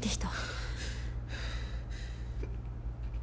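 A woman sobs close by.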